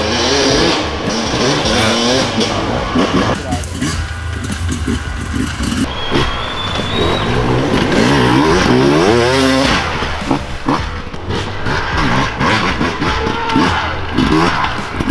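A dirt bike engine revs and roars up close, rising and falling in pitch.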